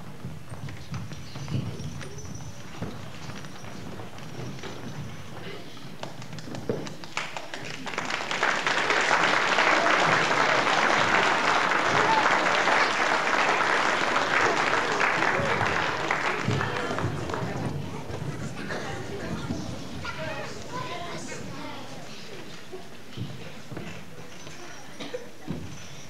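A crowd of children and adults murmurs and chatters.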